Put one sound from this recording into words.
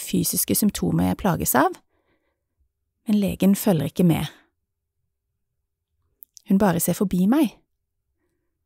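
A woman speaks with animation close by, in short bursts with pauses.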